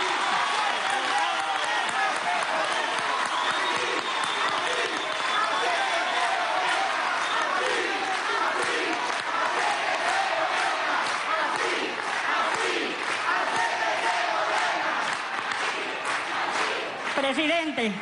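A large crowd cheers and claps in a big echoing hall.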